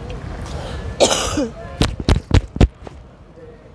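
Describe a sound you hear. A young woman sobs and sniffs.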